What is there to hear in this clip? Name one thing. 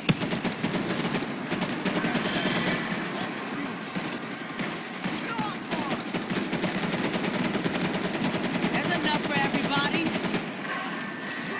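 A machine gun fires rapid bursts.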